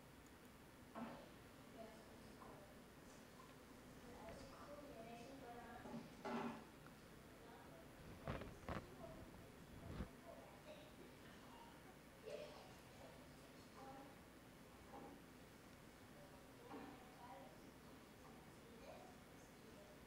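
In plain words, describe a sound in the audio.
A woman talks quietly, heard through a loudspeaker in a large room.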